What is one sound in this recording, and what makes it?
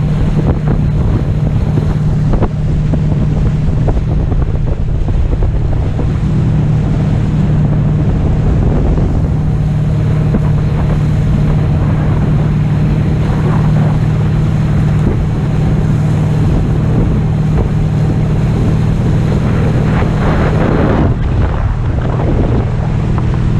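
Water splashes and churns around a towed inflatable.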